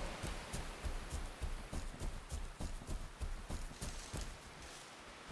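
Quick footsteps rustle through grass.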